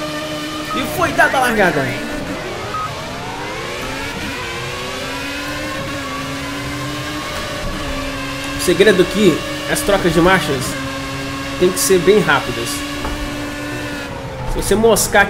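A racing car engine revs high and shifts up through the gears.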